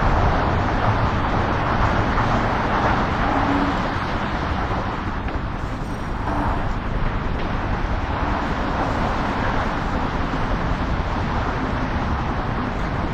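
A helicopter's rotor blades thud steadily overhead.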